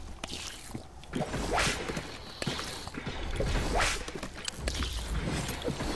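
A drink is gulped down in loud swallows.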